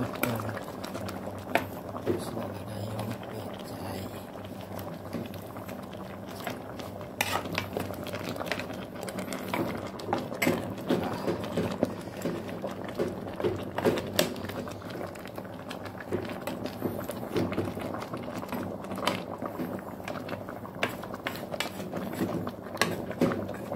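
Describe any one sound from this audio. Vegetable broth simmers and bubbles in a steel pot.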